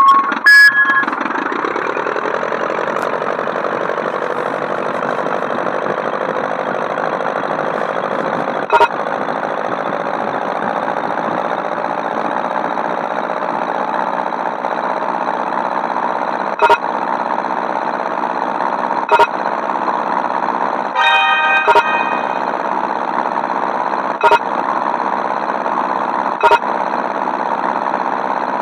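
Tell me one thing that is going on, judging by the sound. A single-engine propeller plane's engine drones.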